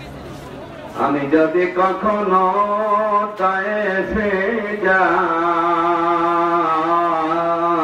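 A man chants in a melodic, drawn-out voice through a loudspeaker.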